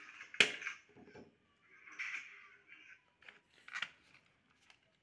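A phone knocks and clicks against a hard surface as a hand handles it.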